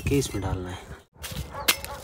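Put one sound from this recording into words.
A sickle snips through leafy stems.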